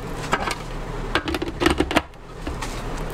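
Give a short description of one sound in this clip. A plastic lid clatters and knocks.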